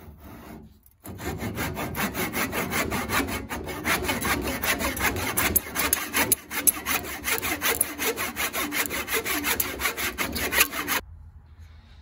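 A hand saw cuts through wood with quick, steady back-and-forth strokes.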